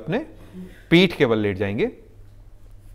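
A man speaks calmly into a clip-on microphone.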